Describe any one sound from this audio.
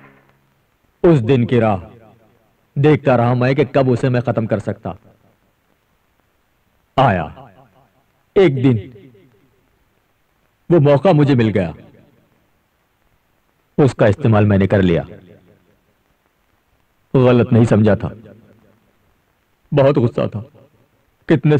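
A middle-aged man speaks close by in short, emphatic bursts with pauses between them.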